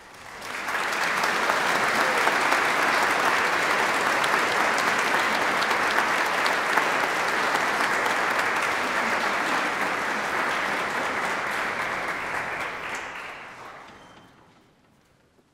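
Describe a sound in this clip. An audience applauds loudly in a large echoing hall, then the clapping fades away.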